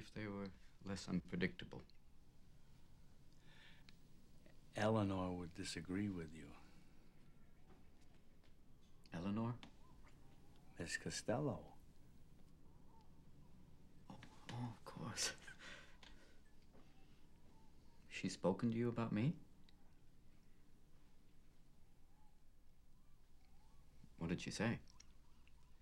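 A man speaks calmly, close by, in short bursts.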